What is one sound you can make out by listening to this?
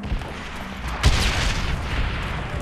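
An explosion booms, followed by a low rumble.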